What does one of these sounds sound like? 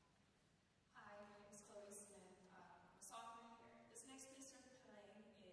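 A woman speaks calmly into a microphone in a large hall.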